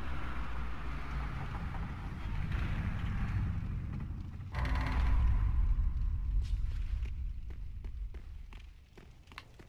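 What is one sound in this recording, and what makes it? Heavy doors grind and rumble slowly open.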